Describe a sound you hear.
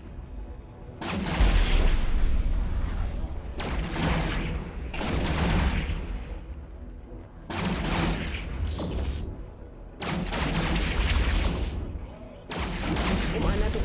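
A man talks into a microphone with animation, close by.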